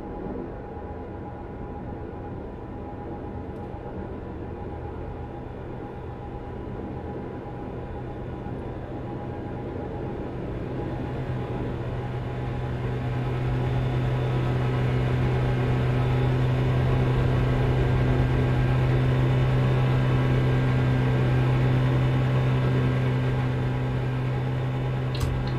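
Tyres roll on a road.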